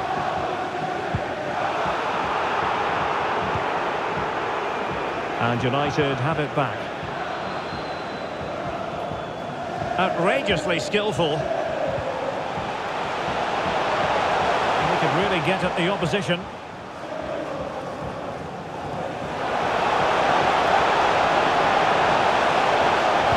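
A large stadium crowd roars and chants steadily throughout.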